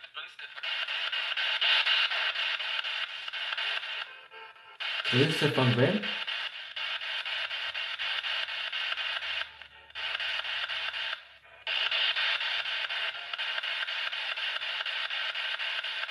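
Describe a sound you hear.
A small handheld radio hisses with loud static.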